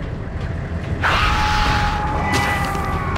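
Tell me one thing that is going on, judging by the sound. A magical power charges up with a loud whoosh and a ringing hum.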